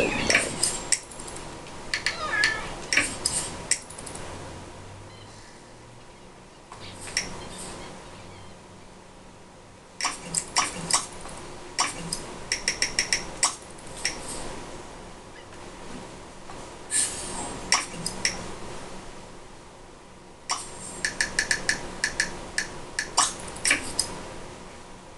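Short game menu clicks and chimes sound from a television.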